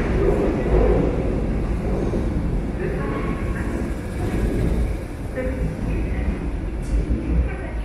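A metro train rumbles and rattles along the platform in an echoing underground station.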